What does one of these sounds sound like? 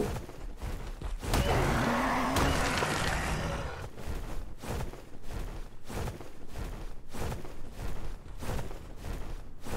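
Large wings beat with steady, heavy whooshes.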